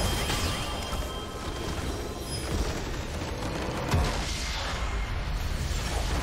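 Magical spell effects whoosh and crackle in a video game.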